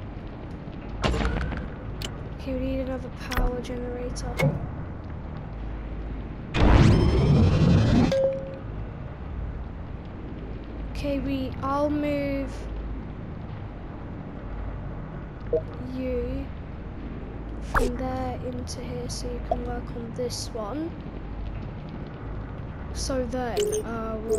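Electronic menu beeps and clicks sound now and then.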